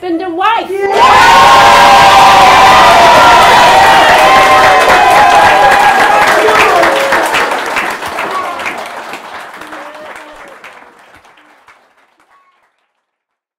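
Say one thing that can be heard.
A crowd applauds and cheers loudly, then fades away.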